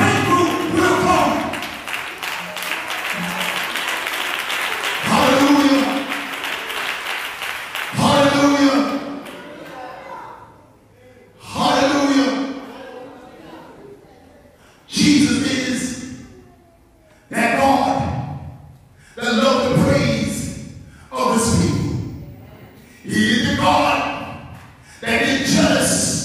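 A man preaches with fervour into a microphone, in loud bursts that echo through a large hall.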